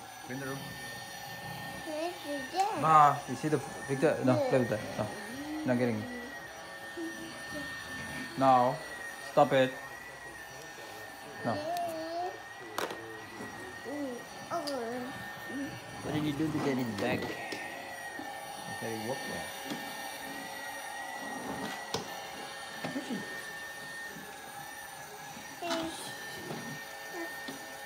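A toy vacuum cleaner whirs steadily.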